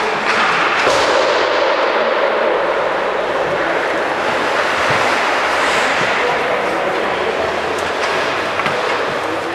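Hockey sticks knock and skates clatter as players walk past, close by.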